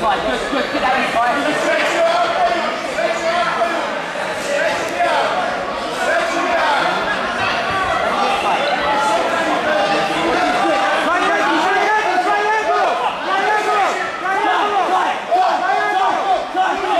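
Several men shout instructions loudly, with a crowd's chatter around them in an echoing hall.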